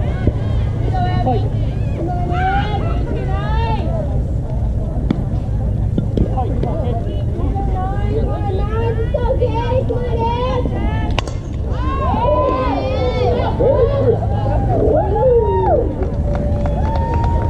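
Young female players call out and chant from across an open field.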